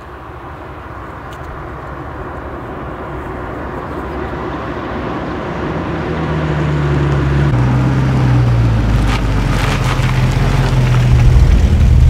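A car engine hums as a car approaches, growing louder.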